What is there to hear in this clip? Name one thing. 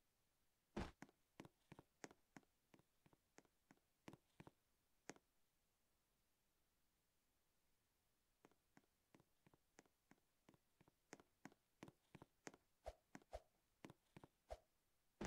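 Light footsteps tap quickly in a game.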